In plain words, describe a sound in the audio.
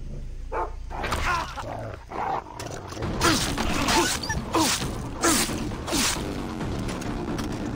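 A dog growls and snarls close by.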